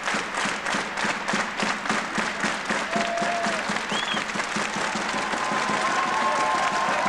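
A crowd claps in rhythm in a large echoing arena.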